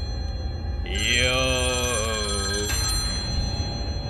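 A young man laughs loudly into a microphone.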